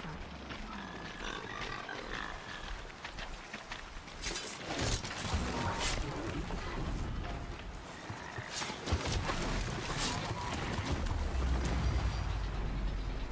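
Metal creatures clank and screech in a fight.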